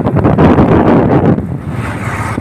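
Wind blows outdoors, buffeting loudly.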